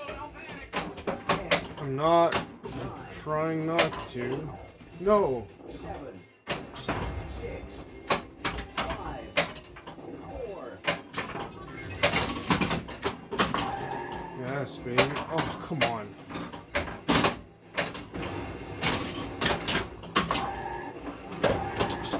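A pinball machine plays loud electronic music and sound effects.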